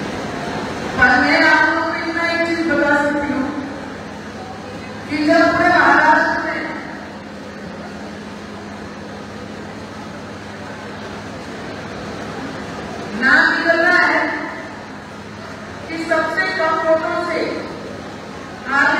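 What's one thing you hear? A woman speaks emotionally into a microphone through loudspeakers.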